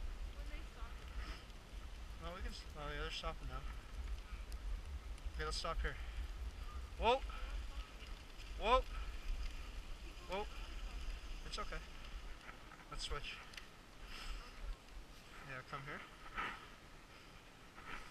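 Sled runners scrape and hiss over packed snow.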